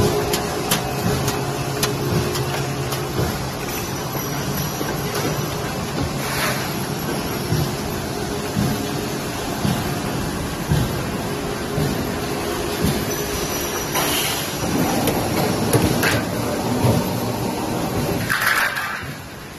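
A roll forming machine hums and rumbles steadily.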